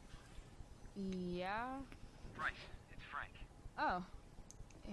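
A young woman answers a phone call casually.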